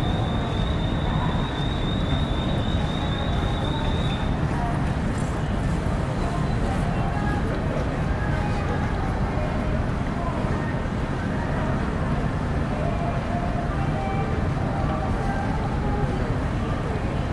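Men and women chatter in a crowd nearby, outdoors.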